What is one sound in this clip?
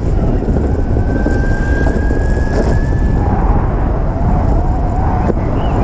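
An electric motor whines steadily, its pitch dropping partway through.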